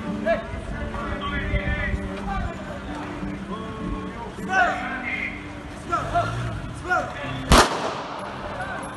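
Men shout urgently and loudly outdoors.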